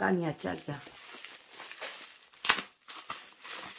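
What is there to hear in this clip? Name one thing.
Plastic bubble wrap crinkles and rustles.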